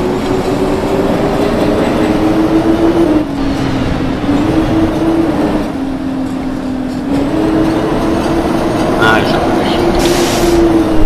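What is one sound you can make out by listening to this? A bus engine hums steadily, its pitch shifting as gears change.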